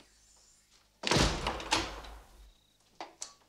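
A door swings shut with a thud.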